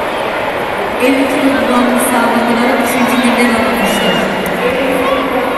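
A crowd cheers loudly for a moment.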